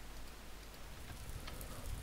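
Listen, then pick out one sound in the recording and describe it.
Flames crackle softly.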